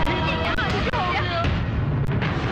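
A woman cries out in distress.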